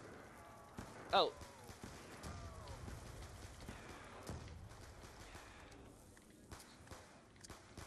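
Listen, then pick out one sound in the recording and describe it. Guns fire in sharp bursts.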